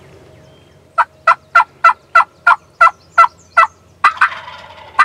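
A wild turkey yelps loudly in a quick series of calls.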